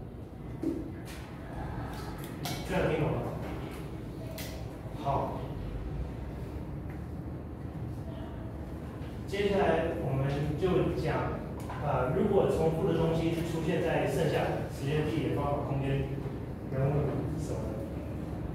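A man lectures in a large room that echoes, his voice coming through a microphone.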